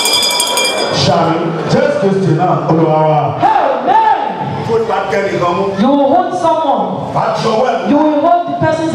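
A man prays loudly and fervently into a microphone, heard through loudspeakers.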